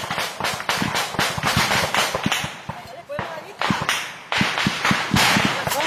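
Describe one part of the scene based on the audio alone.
Rapid gunfire cracks in bursts close by.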